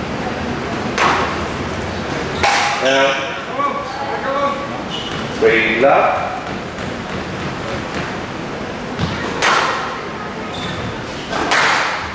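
A squash ball smacks off the court walls.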